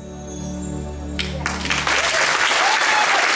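A choir and band hold a final chord.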